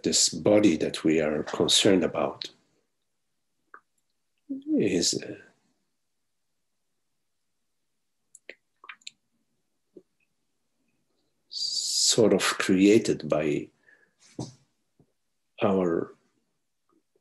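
An older man speaks calmly, in short phrases with pauses, over an online call.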